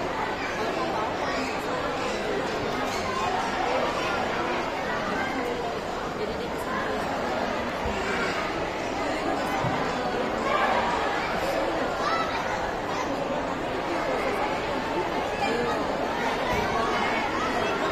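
A keyboard plays a classical piano piece through loudspeakers in a large echoing hall.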